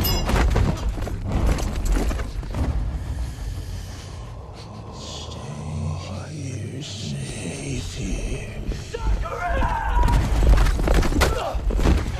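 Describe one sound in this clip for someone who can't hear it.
A horse gallops over soft ground.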